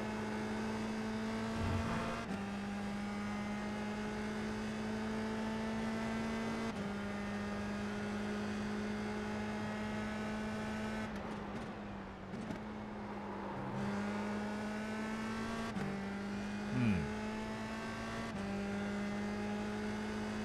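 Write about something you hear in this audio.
A racing car engine whines at high revs, shifting gears as it speeds along.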